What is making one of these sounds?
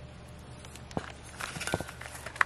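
Fingers crinkle a small paper box.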